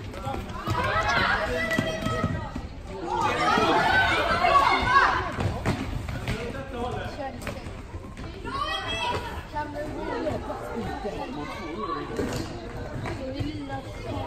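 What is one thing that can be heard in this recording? Young women shout and cheer loudly in a large echoing hall.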